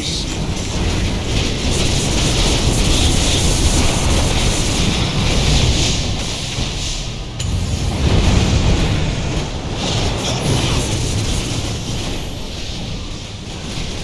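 Spell effects and combat sounds clash and crackle in a fast battle.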